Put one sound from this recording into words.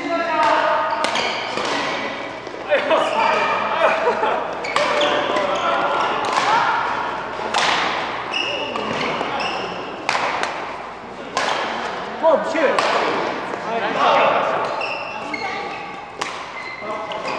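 Rackets hit a shuttlecock with sharp smacks in an echoing hall.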